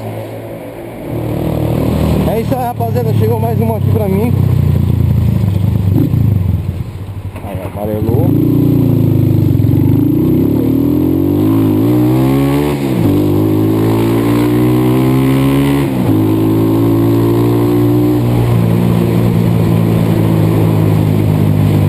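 A motorcycle engine revs up and down as the bike rides along a street.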